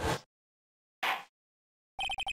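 A wooden gavel bangs once, sharply.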